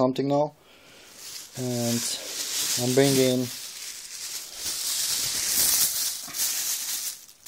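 A plastic bag rustles and crinkles close by.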